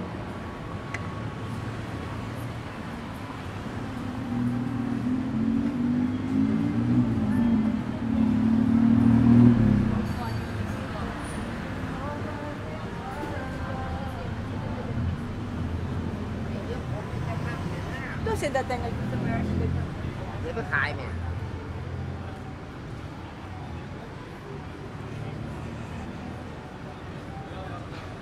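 Traffic hums along a city street outdoors.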